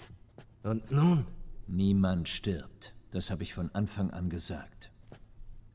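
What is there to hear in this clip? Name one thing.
A man speaks in a low, gravelly voice, close by.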